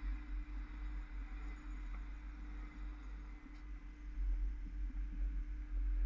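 Cars pass by on a nearby road.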